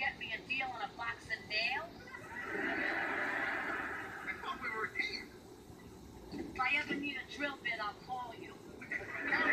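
A woman speaks calmly through a television speaker.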